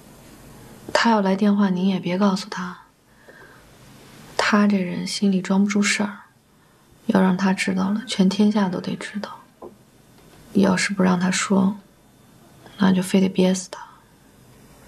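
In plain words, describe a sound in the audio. A young woman speaks quietly and earnestly, close by.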